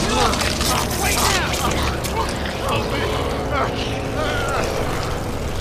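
A man shouts urgently up close.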